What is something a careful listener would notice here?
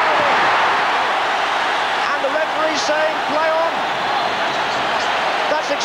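A large stadium crowd roars loudly and steadily.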